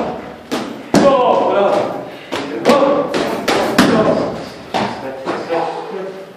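A man speaks calmly between punches.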